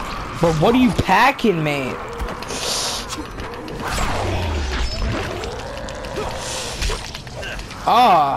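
A blade strikes flesh with wet, heavy thuds.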